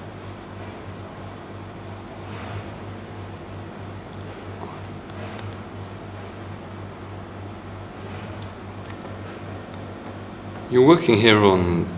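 A ceiling fan hums steadily.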